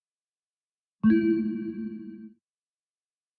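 A short bright chime rings out once and fades quickly.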